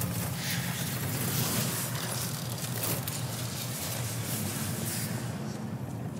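A magical shimmering swell rings out.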